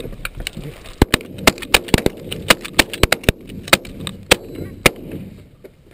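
Shotguns fire in quick bursts outdoors.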